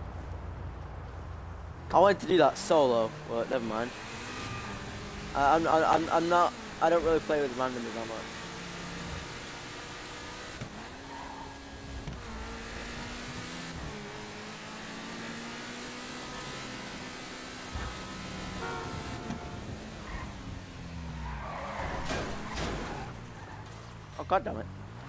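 A sports car engine revs and roars as it speeds along.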